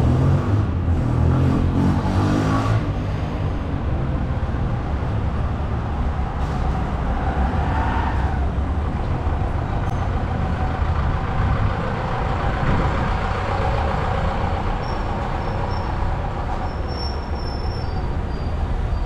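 Traffic rumbles steadily on a nearby street.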